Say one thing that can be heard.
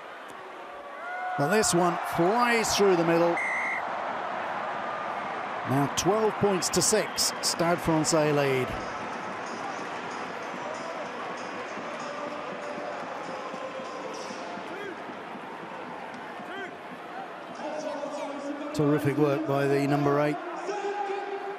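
A stadium crowd murmurs and cheers in the open air.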